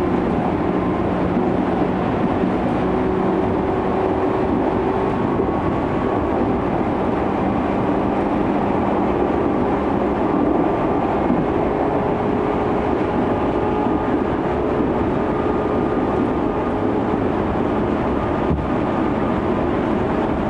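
An electric commuter train's traction motors whine at speed.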